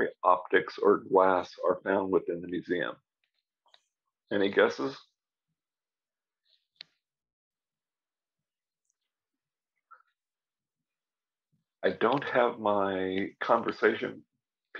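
An elderly man speaks calmly over an online call.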